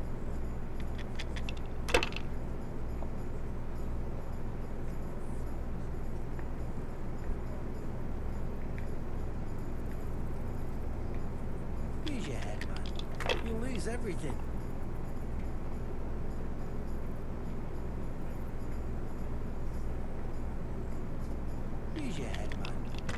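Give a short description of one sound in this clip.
Dice rattle in a wooden cup and clatter onto a wooden board.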